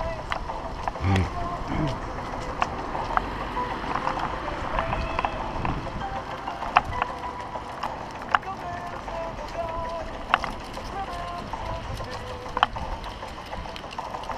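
A bicycle rattles and clicks as it rolls over paving.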